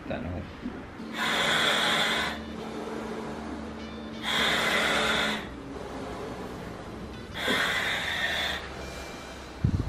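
A woman breathes in deeply through a hissing mouthpiece, again and again.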